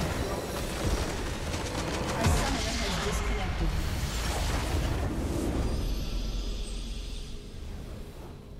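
A huge magical blast booms and crackles loudly.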